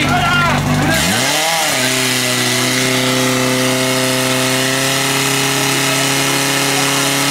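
A portable pump engine starts up and roars steadily.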